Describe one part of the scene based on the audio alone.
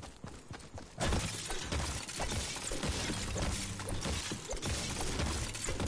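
A pickaxe strikes rock with sharp, repeated hits.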